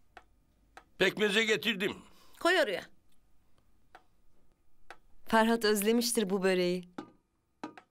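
A woman talks with animation nearby.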